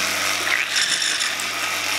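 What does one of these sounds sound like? Water pours in a steady stream into a bucket.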